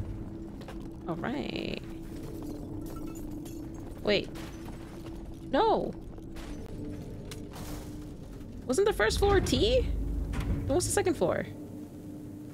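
A young woman speaks into a close microphone in short, expressive bursts.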